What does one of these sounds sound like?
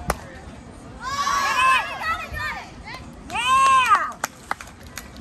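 Young women shout and cheer loudly outdoors.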